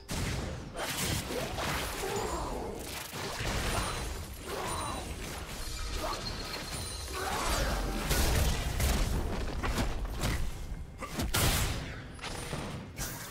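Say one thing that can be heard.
Magic blasts whoosh and crackle in quick bursts.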